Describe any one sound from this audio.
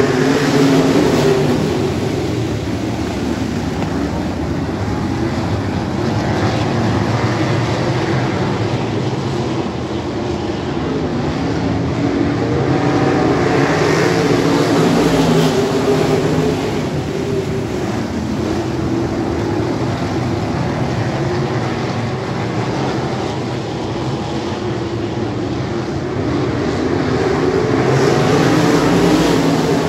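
A pack of sprint cars roars around a dirt oval at full throttle.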